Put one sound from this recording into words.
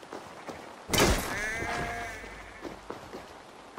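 A sheep bleats close by.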